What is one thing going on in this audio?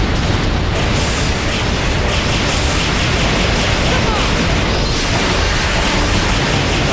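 Loud fighting crashes and rumbles.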